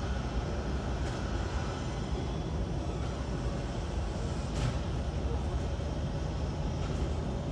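A jet airliner's engines whine and rumble steadily nearby.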